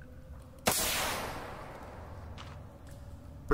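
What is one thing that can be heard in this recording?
A flare ignites with a loud fizzing hiss that quickly fades.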